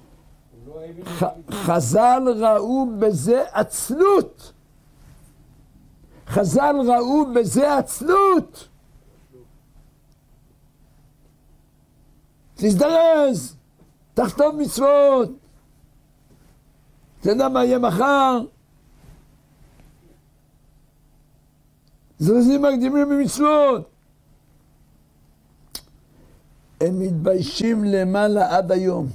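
An elderly man speaks with animation into a close microphone, in short bursts with pauses.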